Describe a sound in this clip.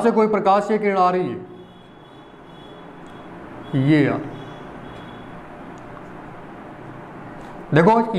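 A young man speaks calmly close by, explaining in short bursts.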